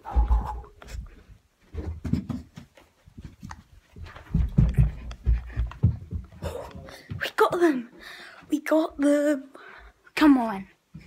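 A child talks close to a phone microphone with animation, squealing and shouting at times.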